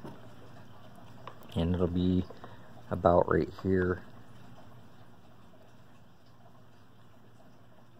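A plastic switch snaps into place in a panel.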